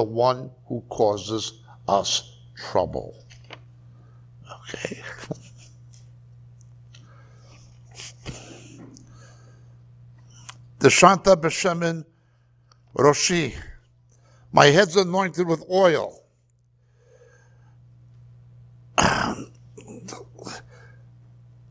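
A middle-aged man speaks into a clip-on microphone, reading out and explaining with pauses.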